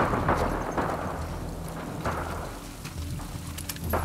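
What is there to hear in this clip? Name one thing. Footsteps walk quickly on wet pavement.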